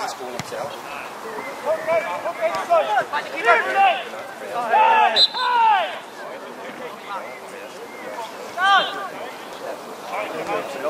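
Young men shout to each other outdoors across an open field.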